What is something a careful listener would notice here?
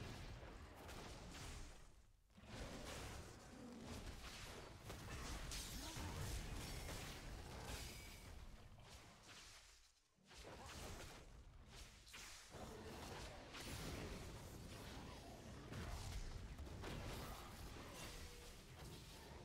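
Spells whoosh and blast in a video game fight.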